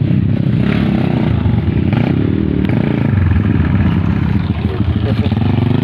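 A second dirt bike approaches and passes close by.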